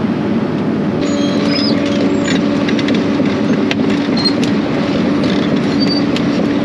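Metal tracks of an excavator clank and squeak as the machine moves.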